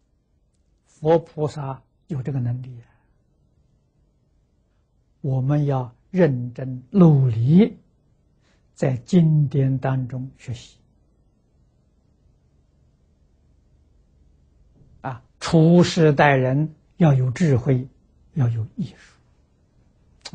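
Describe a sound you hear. An elderly man speaks calmly and slowly into a close microphone, pausing between phrases.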